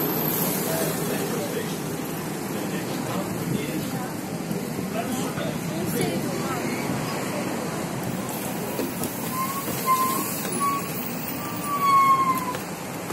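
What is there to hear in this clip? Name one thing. A trolleybus idles with a low, steady hum close by.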